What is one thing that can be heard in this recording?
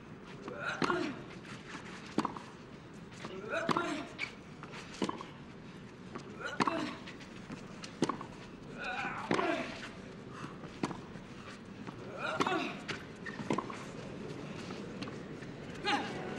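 A tennis ball is struck sharply back and forth in a rally.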